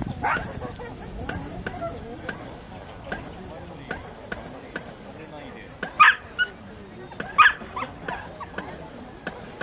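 A lure line pulley ticks and whirs steadily close by.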